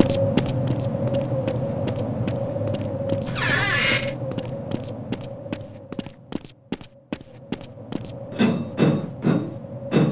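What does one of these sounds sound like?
Footsteps clank steadily on a metal floor.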